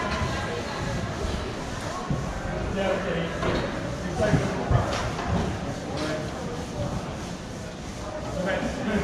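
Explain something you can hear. Skates roll and scrape across a hard floor in a large echoing hall.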